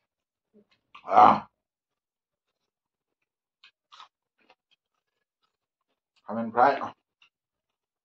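A man chews and slurps food noisily close by.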